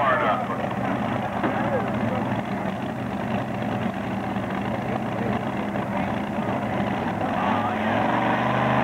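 A powerful tractor engine idles with a deep, rough rumble.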